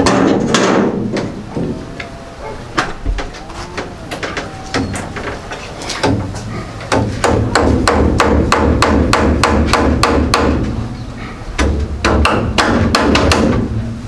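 A hammer knocks repeatedly on wooden boards, in quick bursts.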